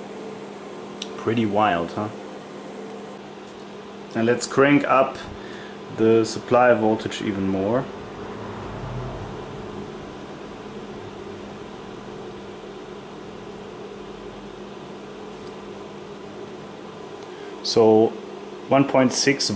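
A power supply hums steadily.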